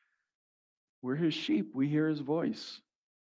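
A middle-aged man speaks calmly into a microphone, heard over a loudspeaker.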